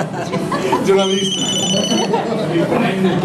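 A mobile phone beeps a short electronic tone.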